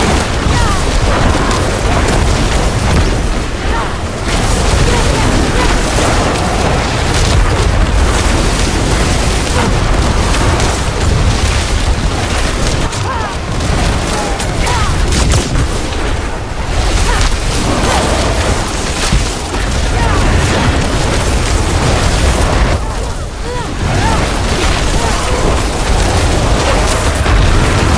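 Game spells crackle and explode rapidly and without pause.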